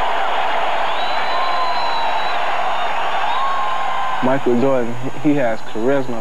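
A large arena crowd roars and cheers.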